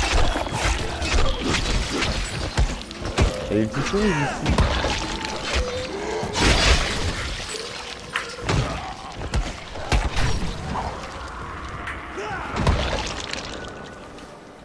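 A blade hacks into flesh with heavy, wet thuds.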